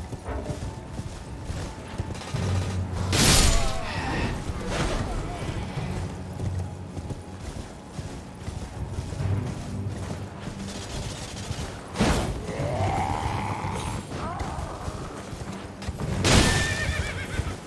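Horse hooves thud steadily at a gallop.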